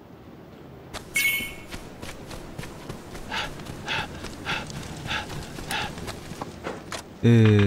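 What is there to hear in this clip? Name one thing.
Footsteps crunch quickly on packed dirt.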